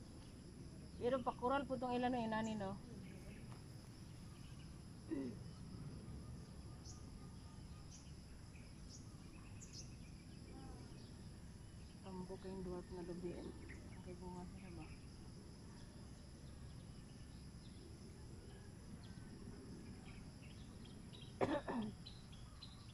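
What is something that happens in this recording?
A woman talks quietly nearby, in short bursts.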